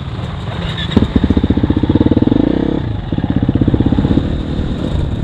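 Another dirt bike engine buzzes past nearby.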